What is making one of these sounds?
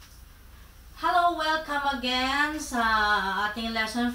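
A woman speaks loudly and clearly close by.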